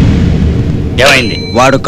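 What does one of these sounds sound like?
A man speaks gruffly close by.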